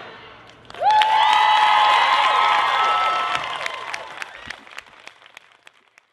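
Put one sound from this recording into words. People clap their hands in applause.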